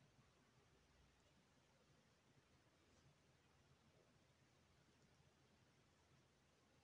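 A crochet hook softly scrapes through yarn.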